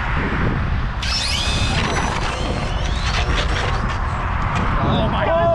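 Electric motors of two small toy cars whine loudly as the cars speed off.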